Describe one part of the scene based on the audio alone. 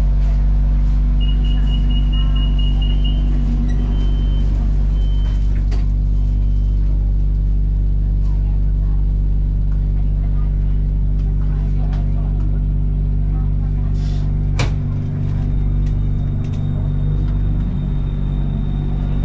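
A train hums steadily with a low rumble as it rolls slowly along a platform.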